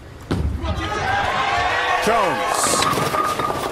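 Bowling pins crash and clatter.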